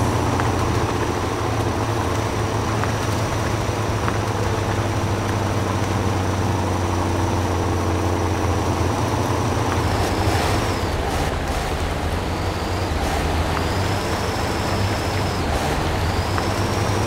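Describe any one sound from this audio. Tyres churn through mud.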